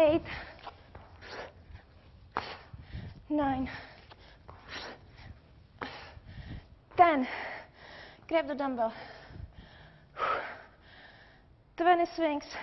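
A young woman speaks with energy close to a microphone.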